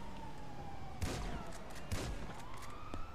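A rifle fires several quick shots.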